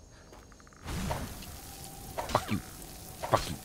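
A magic spell crackles and bursts with a loud hiss.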